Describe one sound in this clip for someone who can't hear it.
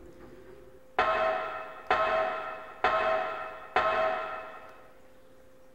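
Footsteps clang one by one on metal ladder rungs and ring out briefly.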